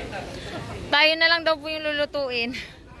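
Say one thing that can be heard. A young woman speaks loudly and animatedly nearby.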